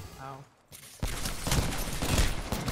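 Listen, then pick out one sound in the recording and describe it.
Gunfire rattles in a video game.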